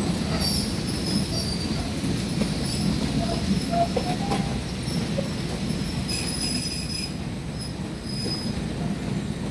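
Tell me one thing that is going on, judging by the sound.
Train wheels squeal faintly on the rails.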